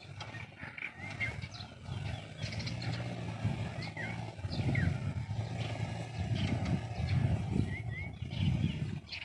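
A small tractor engine chugs steadily along a dirt track.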